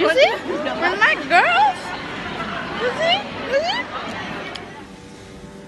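Young women laugh together.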